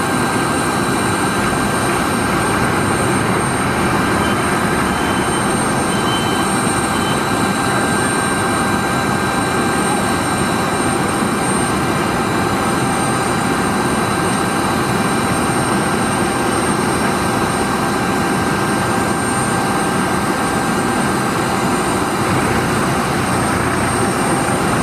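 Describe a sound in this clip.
A parked Embraer 195 jet airliner hums and whines without a break.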